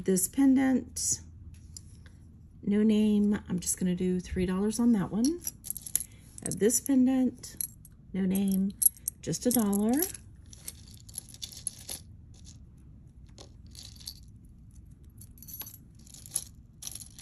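Metal jewellery clinks and taps softly as it is handled.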